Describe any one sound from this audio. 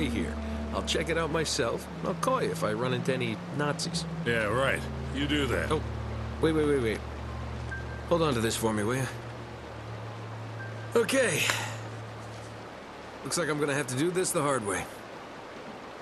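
An older man speaks in a gravelly voice.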